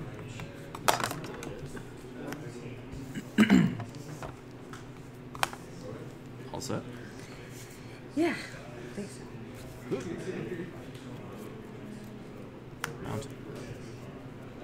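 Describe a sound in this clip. Playing cards tap and slide on a table mat.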